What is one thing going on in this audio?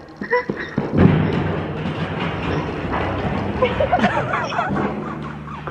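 Plastic and metal barrels roll and rumble over sand.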